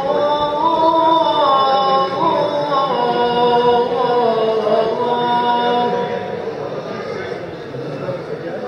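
A man chants in a long, melodic voice through a loudspeaker in an echoing hall.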